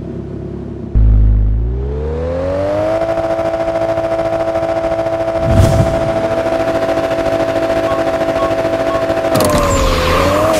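A car engine revs up and holds a high, steady roar.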